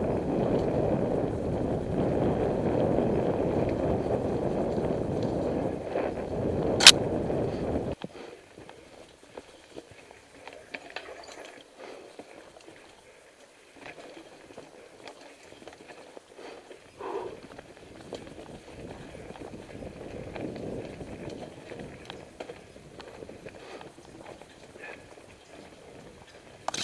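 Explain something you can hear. A bicycle frame rattles over bumps and roots.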